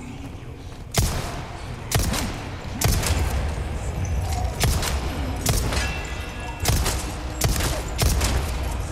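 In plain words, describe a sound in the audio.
Handgun shots ring out in a large echoing hall.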